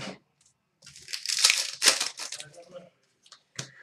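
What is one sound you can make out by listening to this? A foil wrapper rustles and crinkles in someone's hands.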